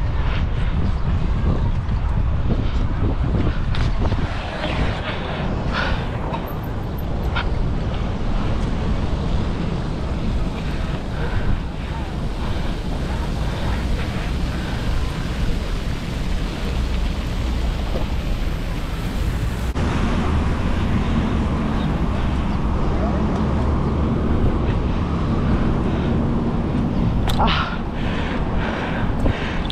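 Bicycle tyres roll over paving stones.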